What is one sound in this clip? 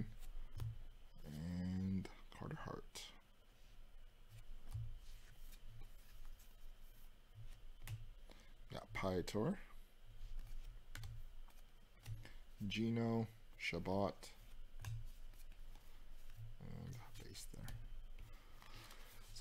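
Cards slide and flick against each other in quick handling.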